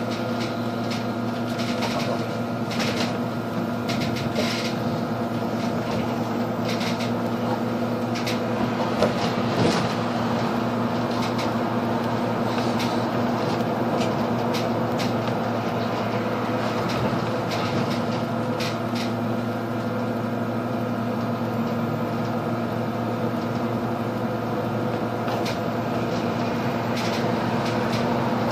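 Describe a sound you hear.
The bus body rattles and clicks as it moves.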